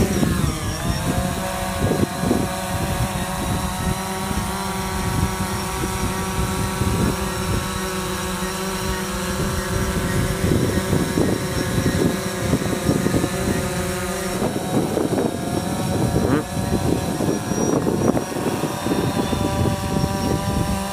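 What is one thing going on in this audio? A drone hovers with a steady buzzing hum.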